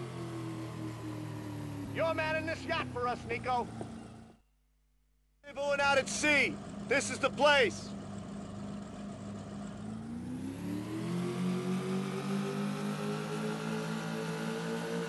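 Water churns and splashes behind a motorboat.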